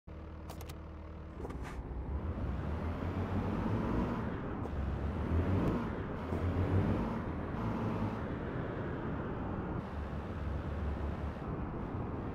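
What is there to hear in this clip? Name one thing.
A truck engine rumbles low and steadily, rising as the truck moves off.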